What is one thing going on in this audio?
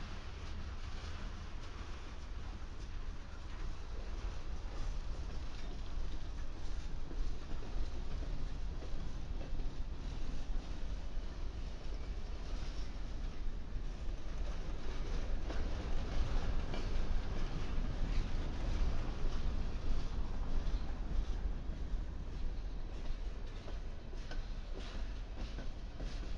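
A freight train rolls past close by with a steady low rumble.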